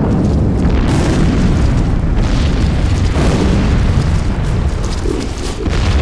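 Deep explosions rumble and boom loudly.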